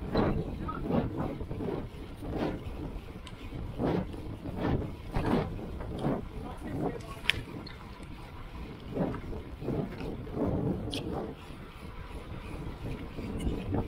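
Wind buffets the microphone loudly as a bicycle speeds along.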